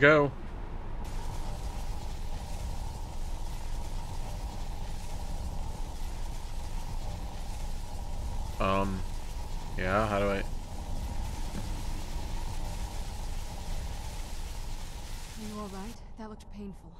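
A deep magical roar hums steadily.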